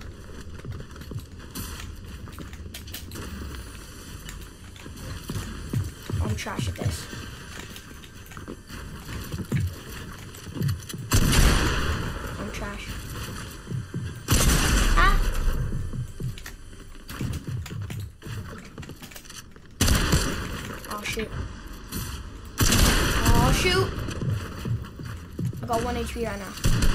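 Game building pieces snap and clatter rapidly into place.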